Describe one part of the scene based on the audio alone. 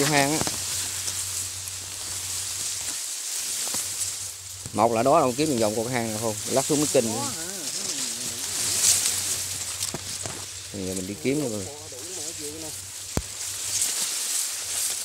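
Leaves of tall grass rustle and brush close by.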